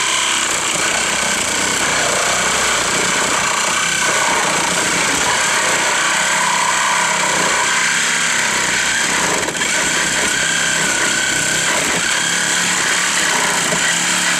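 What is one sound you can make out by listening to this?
A hydraulic rescue tool whines and grinds steadily as it cuts into a car's metal.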